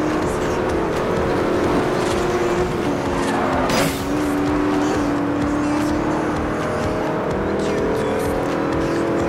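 A supercar engine roars at high speed.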